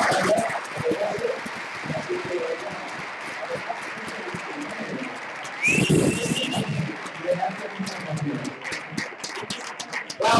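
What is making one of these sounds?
A man speaks with animation into a microphone, heard through loudspeakers in a large echoing hall.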